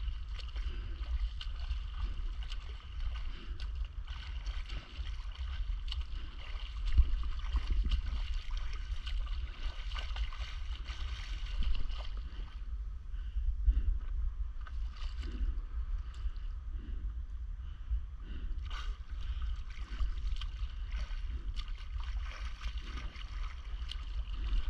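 A swimmer's arms splash steadily through calm water close by.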